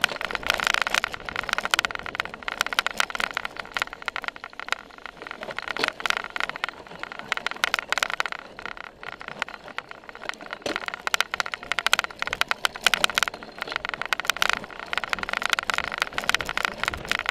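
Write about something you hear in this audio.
A bicycle rattles and clatters over bumpy grass.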